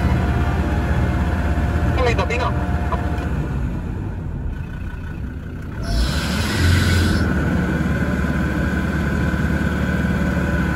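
An engine revs hard as a vehicle churns through deep mud.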